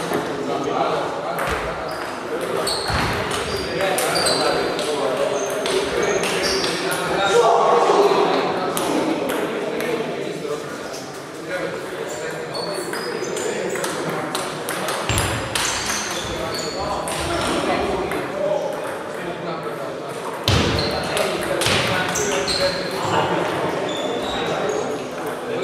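Ping-pong balls click rapidly on tables and paddles in a large echoing hall.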